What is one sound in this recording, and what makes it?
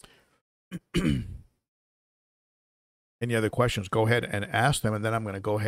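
An older man speaks calmly and closely into a microphone, with pauses.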